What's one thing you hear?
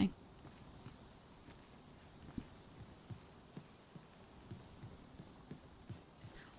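Footsteps thud softly on a wooden ladder at a steady pace.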